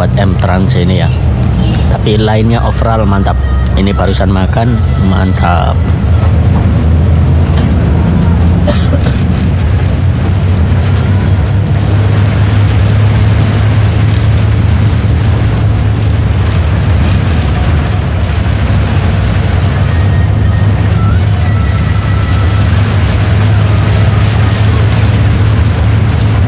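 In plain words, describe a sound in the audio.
A bus engine hums steadily, heard from inside the cabin.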